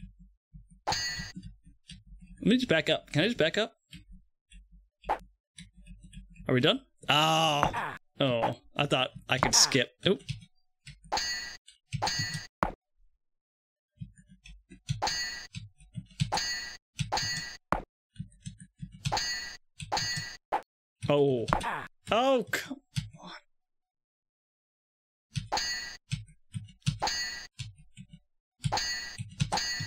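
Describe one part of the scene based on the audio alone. Swords clash again and again.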